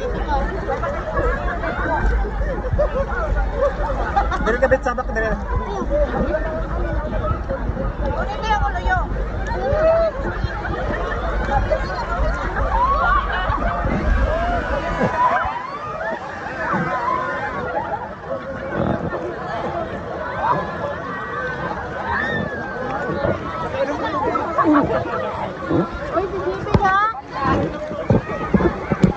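A crowd of people chatter and shout with excitement outdoors.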